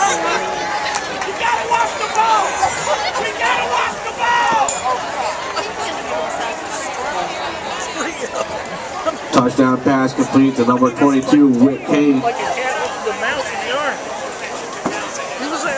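A crowd of spectators cheers and chatters outdoors.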